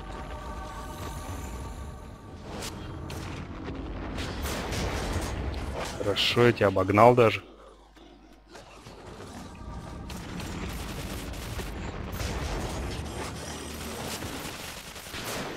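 A crackling magic energy beam hums and sizzles.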